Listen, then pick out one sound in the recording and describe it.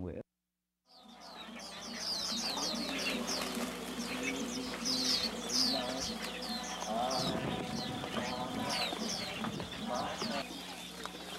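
Many small birds chirp and twitter close by.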